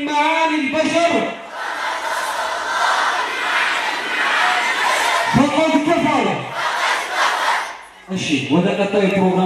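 A man chants loudly through a microphone in a large echoing hall.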